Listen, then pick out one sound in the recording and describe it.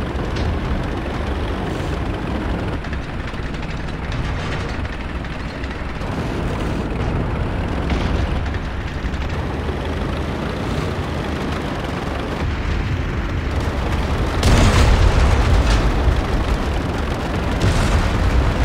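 Tank tracks crunch through snow.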